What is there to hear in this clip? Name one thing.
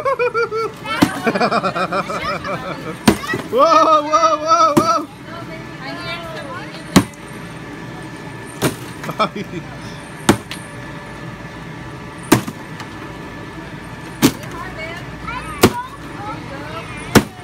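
A stick hits a cardboard piñata with hollow thuds.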